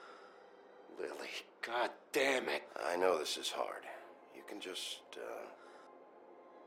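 A man speaks calmly and gently.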